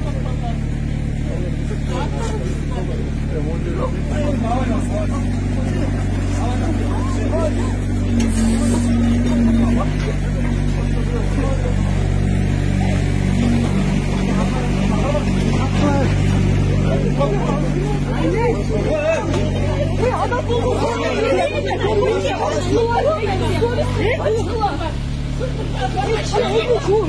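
A crowd of men and women shout and argue in agitation nearby.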